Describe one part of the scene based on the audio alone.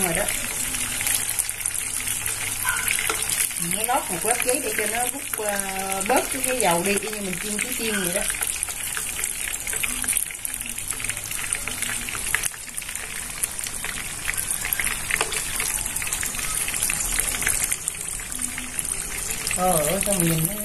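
Hot oil sizzles and crackles steadily in a pan.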